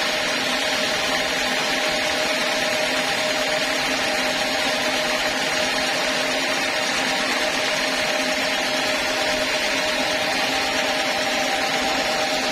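A band saw whines as it cuts through a teak log.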